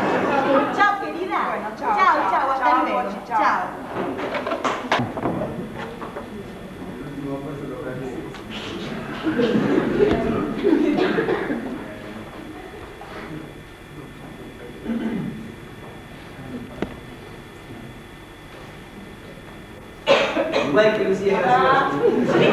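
A woman speaks into a telephone with animation, heard from across a hall.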